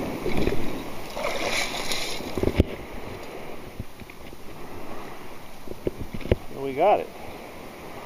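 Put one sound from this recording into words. Bubbles gurgle as they rise through water.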